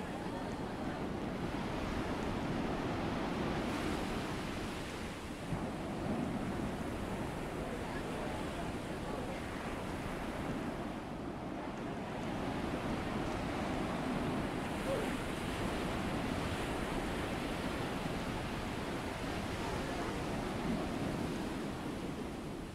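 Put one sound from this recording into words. Water churns and rushes along a ship's hull.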